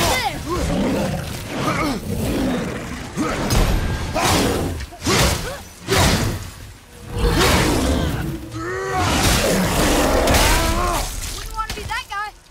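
An axe strikes a creature with heavy thuds.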